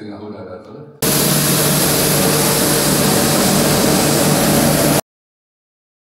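A street sweeper truck runs with a loud, steady roar.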